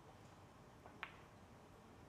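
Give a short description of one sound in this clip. A pool cue strikes a ball on a billiard table.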